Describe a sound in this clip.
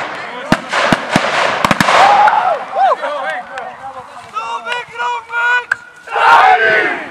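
A group of young men cheer and chant loudly outdoors.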